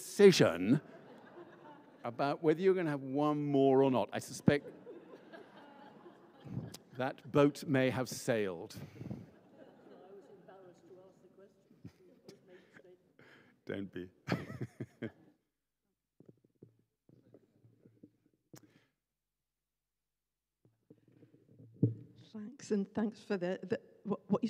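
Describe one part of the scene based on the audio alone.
An older man talks calmly into a microphone, with pauses, in a reverberant hall.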